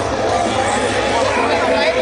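A woman talks close by amid the crowd.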